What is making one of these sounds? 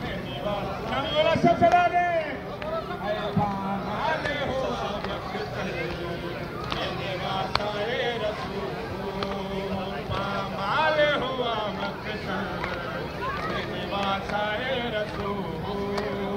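Men chant loudly together.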